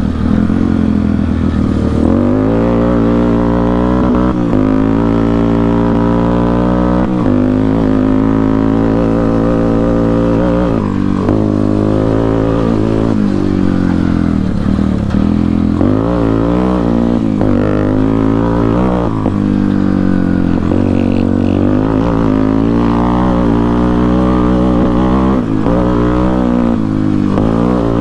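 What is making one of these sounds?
A dirt bike engine revs up and down as the bike rides close by.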